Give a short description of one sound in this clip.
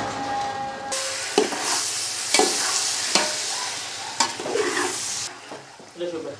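Food sizzles in a hot pot.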